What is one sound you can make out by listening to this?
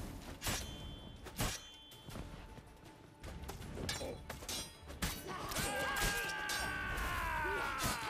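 Swords clash with sharp metallic strikes.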